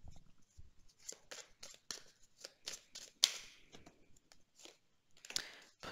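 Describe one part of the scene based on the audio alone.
A deck of cards is shuffled with quick soft flicks.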